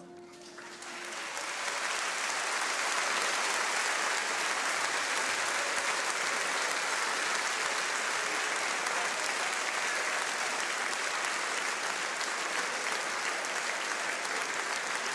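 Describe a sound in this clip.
A large crowd claps and cheers loudly in a big hall.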